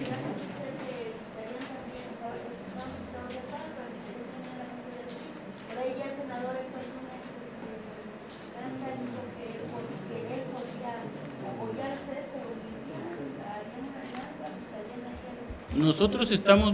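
A man speaks calmly, faint and distant, in a room.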